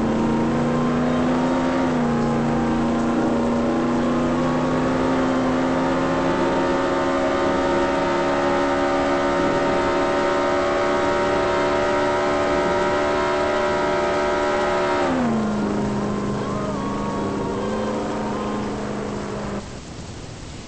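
A car engine hums steadily at high revs, then drops in pitch and cuts out.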